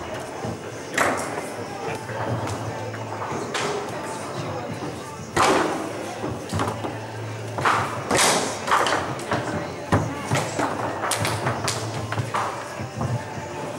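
A foosball ball cracks against plastic players and the table walls.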